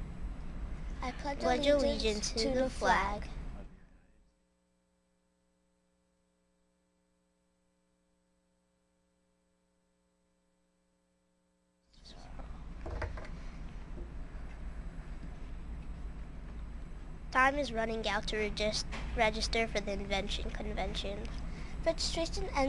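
A young girl speaks clearly into a microphone, as if reading out news.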